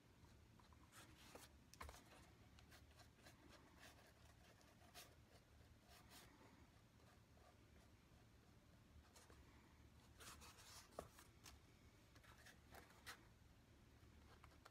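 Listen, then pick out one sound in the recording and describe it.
Stiff foam sheets rustle, tap and scrape as they are handled close by.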